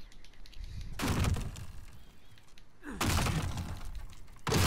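A heavy wooden door creaks and rattles.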